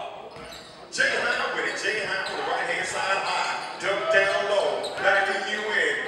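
Spectators cheer and shout loudly in an echoing gym.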